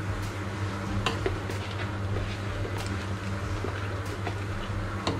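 A spoon stirs thick liquid in a pot.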